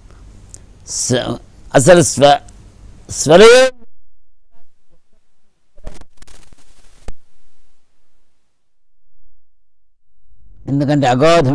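An elderly man sings in a strong, close voice, with pauses between phrases.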